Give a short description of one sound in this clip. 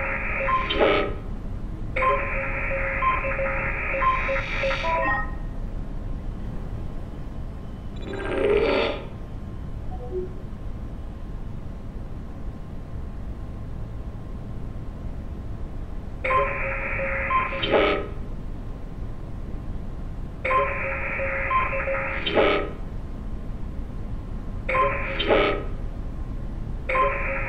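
An electronic scanner beeps and hums in steady bursts.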